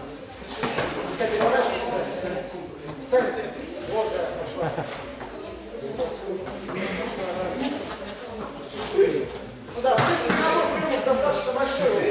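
Bodies thud and scuffle on a mat.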